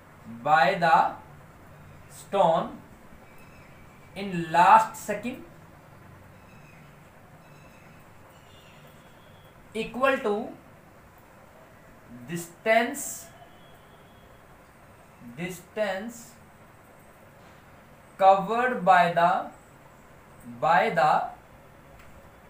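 A man speaks slowly and clearly nearby, in short phrases with pauses.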